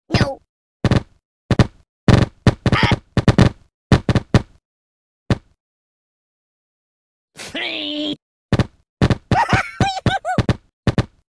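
Small balls thud repeatedly against a soft rag doll.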